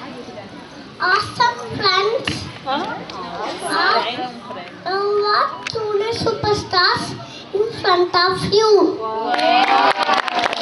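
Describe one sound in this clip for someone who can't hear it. A young boy speaks into a microphone, heard over a loudspeaker outdoors.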